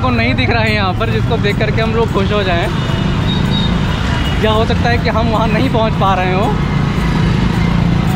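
Motorbike engines idle and rev nearby.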